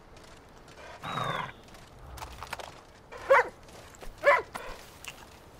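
A dog barks sharply a few times close by.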